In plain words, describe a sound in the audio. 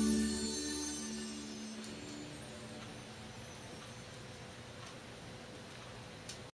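A record's needle hisses and crackles softly in the groove.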